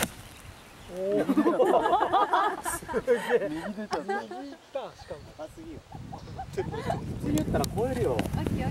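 A young man talks and laughs with animation outdoors.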